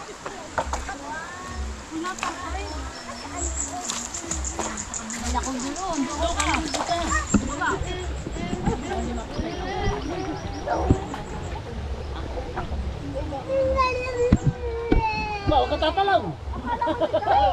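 Men and women chat nearby.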